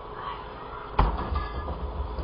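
A refrigerator door thuds shut.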